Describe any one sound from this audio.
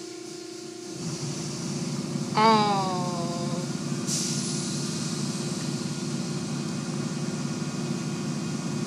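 Large rotating brushes swish and rumble against a car.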